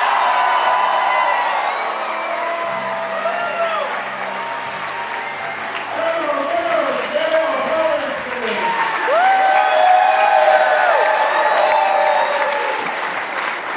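Spectators clap their hands.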